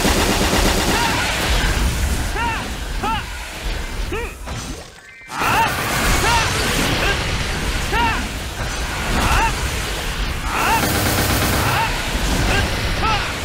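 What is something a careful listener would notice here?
Chiming game sound effects ring out repeatedly.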